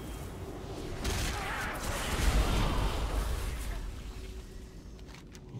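Magic spells crackle and whoosh.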